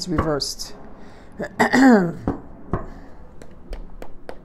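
Cards shuffle and tap in a woman's hands.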